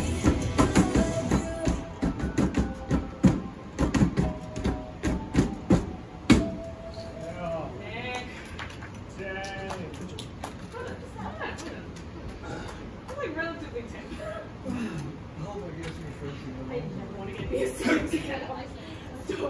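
Feet stomp rhythmically on metal dance pads.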